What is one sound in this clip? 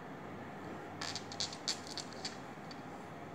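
Threads rustle and rub softly as fingers knot them.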